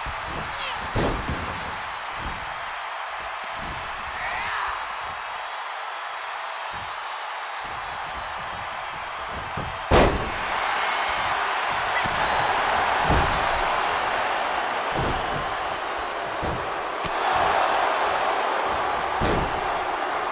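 Heavy thuds of bodies hitting the ring mat sound now and then.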